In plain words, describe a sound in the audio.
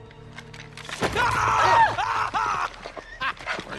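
A woman screams loudly in fright.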